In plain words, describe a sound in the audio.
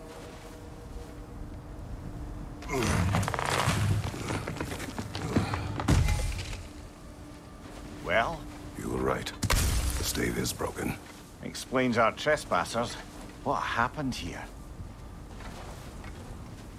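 Heavy footsteps crunch through snow.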